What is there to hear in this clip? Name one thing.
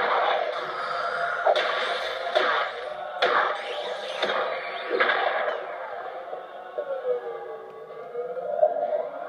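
Game sound effects crackle and burst through a small speaker.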